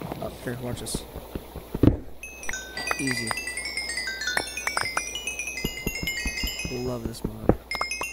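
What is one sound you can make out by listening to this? Stone blocks crack and crumble under repeated pickaxe blows.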